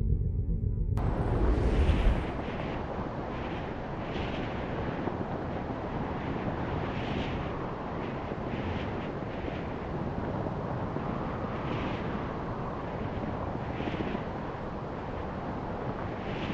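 Wind rushes steadily past a hang glider in flight.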